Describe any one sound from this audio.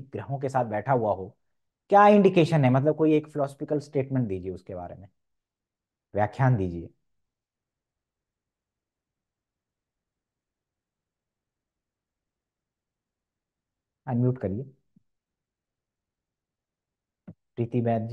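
A man speaks calmly in pauses over an online call.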